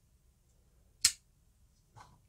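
A folding knife's blade clicks shut.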